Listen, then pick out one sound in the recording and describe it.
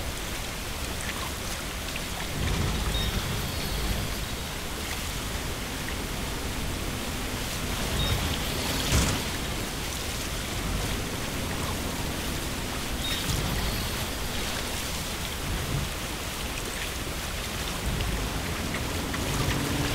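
A vehicle splashes and churns through shallow water.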